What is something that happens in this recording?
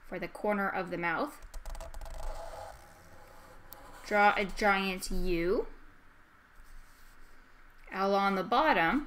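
A felt marker squeaks and scratches on paper.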